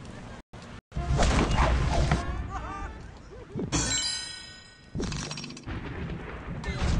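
Bright game chimes and jingles ring out.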